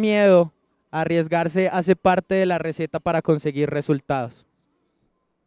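A man speaks to an audience through a microphone.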